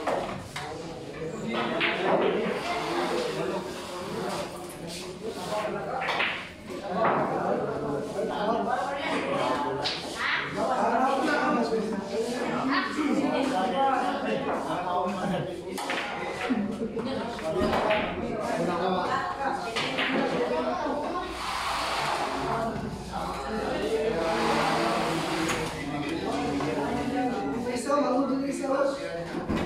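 People chatter and talk nearby in a busy room.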